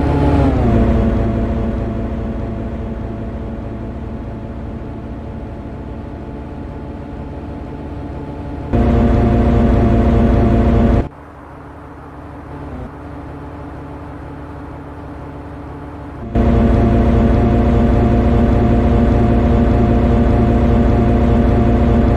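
A train engine hums steadily as a train runs along the tracks.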